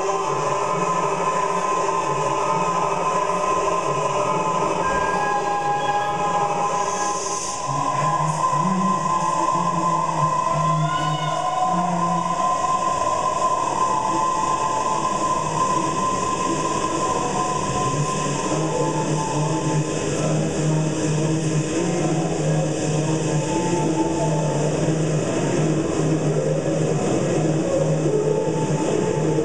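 A woman sings into a handheld microphone over a loudspeaker.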